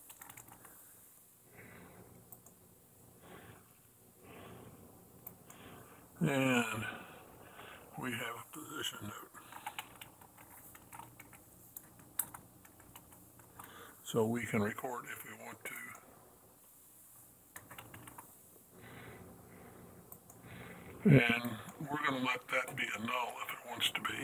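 A man explains calmly into a microphone.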